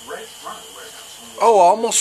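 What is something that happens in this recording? A man blows out smoke with a soft breath.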